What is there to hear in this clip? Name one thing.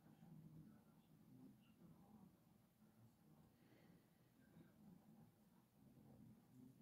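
A cat purrs steadily close by.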